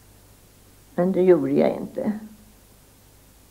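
An elderly woman speaks calmly, close by.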